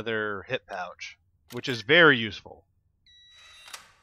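A metal locker door clicks and swings open.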